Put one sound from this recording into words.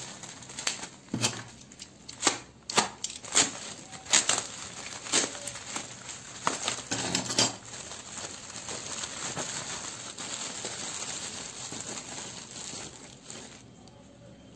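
Bubble wrap crinkles and rustles as it is handled.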